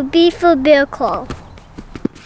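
A young boy speaks brightly, close by.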